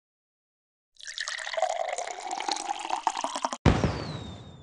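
A whooshing, pouring sound swells as a character slides along a track.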